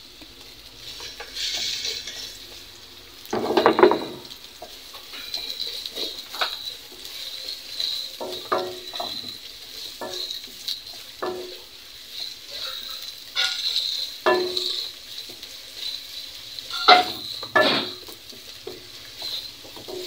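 A spatula stirs onion in a pot.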